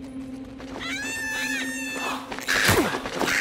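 Crows caw overhead.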